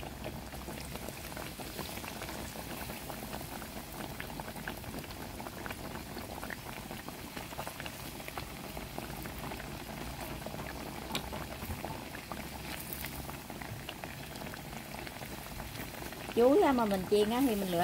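Hot oil sizzles and crackles steadily as food fries.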